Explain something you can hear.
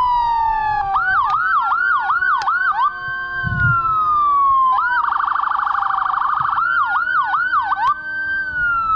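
A siren yelps in quick bursts.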